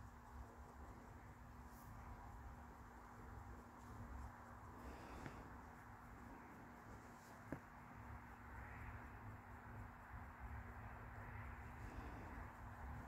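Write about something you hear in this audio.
A pencil scratches softly on a small surface.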